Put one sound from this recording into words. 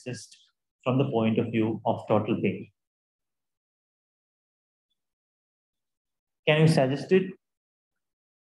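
A man speaks calmly into a microphone over an online call.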